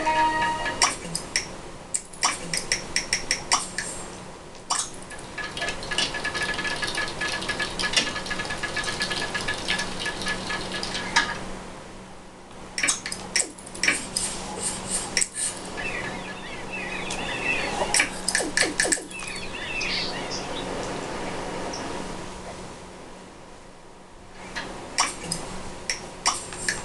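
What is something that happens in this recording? Short chimes and clicks play from a television speaker.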